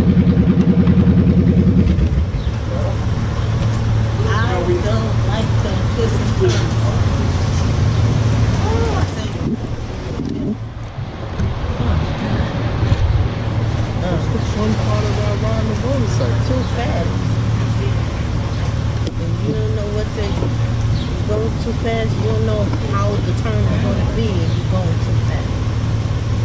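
A motorcycle engine idles steadily close by.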